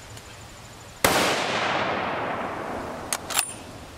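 A rifle fires a loud shot that echoes and rolls away outdoors.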